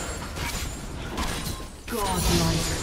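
Video game combat sounds whoosh and clash.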